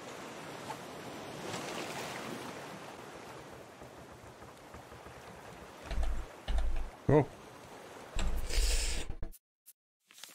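Waves lap gently on open water.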